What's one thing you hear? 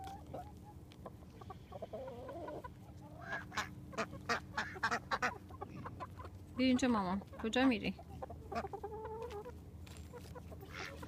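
Hens cluck nearby.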